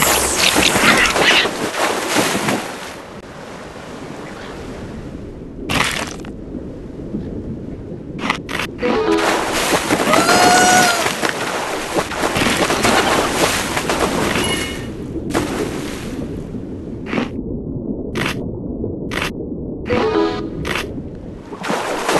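Water splashes loudly as a shark leaps.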